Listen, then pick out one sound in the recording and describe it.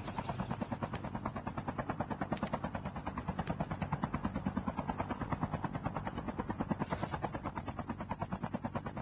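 A helicopter's rotor thumps rapidly and steadily close by.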